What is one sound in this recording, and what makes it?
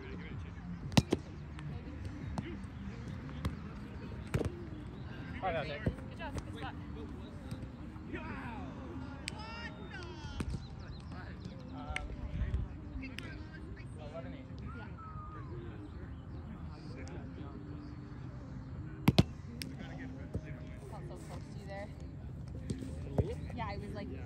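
A ball bounces off a small round net with sharp snaps.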